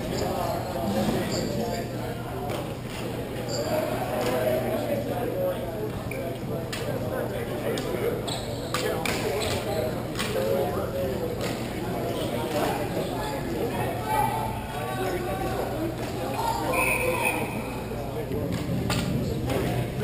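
Players shout to each other across a large echoing hall.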